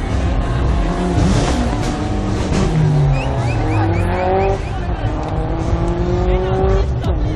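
A car engine roars and revs as the car passes.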